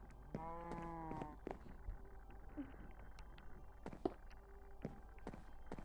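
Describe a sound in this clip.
Blocks are placed with soft thuds.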